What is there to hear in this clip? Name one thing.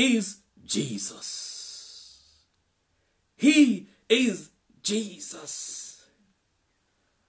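A middle-aged man sings with feeling, close by, in short bursts.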